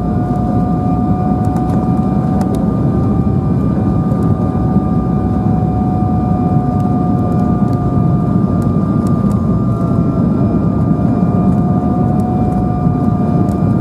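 Jet engines roar steadily, heard from inside an airliner cabin.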